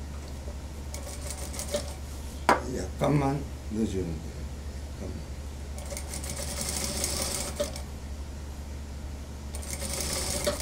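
A sewing machine stitches in short bursts.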